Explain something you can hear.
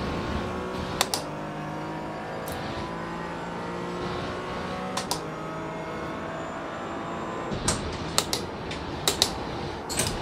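Gear shifts click sharply now and then.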